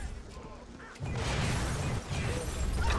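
A gun fires with a loud blast.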